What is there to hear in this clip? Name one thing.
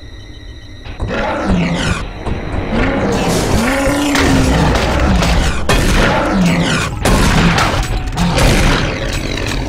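A monster growls and roars close by.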